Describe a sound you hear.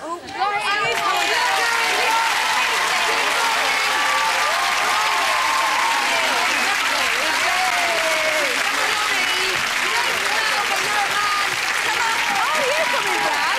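A large crowd cheers and screams in an echoing hall.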